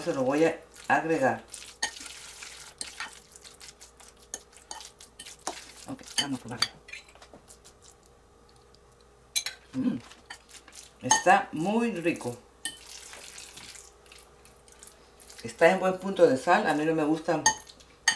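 A spoon scrapes and clicks against a glass bowl.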